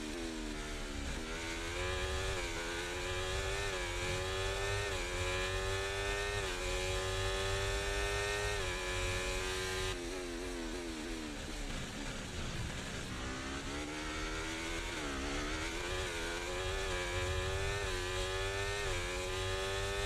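A racing car engine screams and rises in pitch through quick gear shifts.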